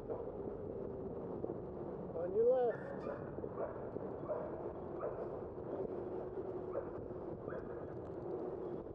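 Wind rushes steadily past a moving cyclist.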